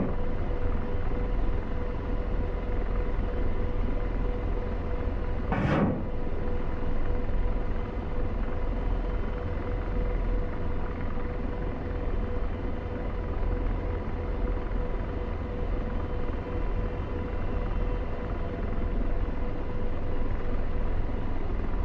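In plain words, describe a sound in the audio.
A helicopter engine and rotor drone steadily from inside the cockpit.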